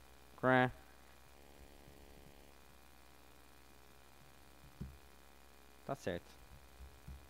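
A man speaks in short bursts through a microphone in a large hall.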